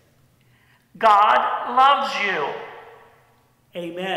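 An older man shouts loudly through a megaphone.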